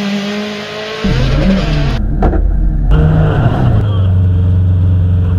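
An engine roars loudly from inside a car, heard close up.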